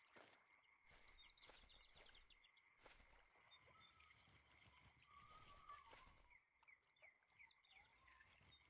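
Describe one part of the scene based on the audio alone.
A fishing reel clicks as the line is wound in.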